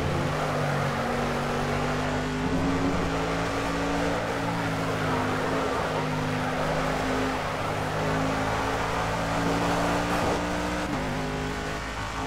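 A racing car engine roars steadily, its pitch shifting as the car changes gear.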